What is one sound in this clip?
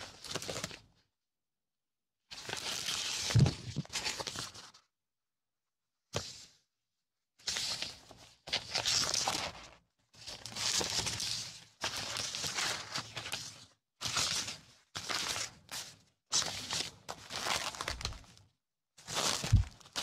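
Plastic sticker sheets crinkle and rustle in hands up close.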